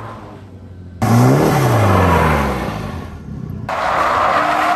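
Tyres screech on tarmac.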